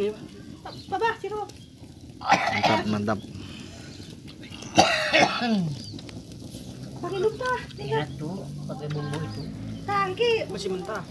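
Meat sizzles softly over hot coals.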